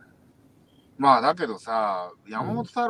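A middle-aged man talks casually over an online call.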